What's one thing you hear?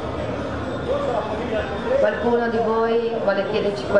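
An elderly woman speaks into a microphone.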